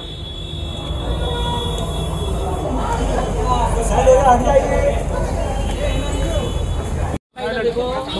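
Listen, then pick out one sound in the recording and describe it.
A crowd murmurs and jostles in a noisy rumble.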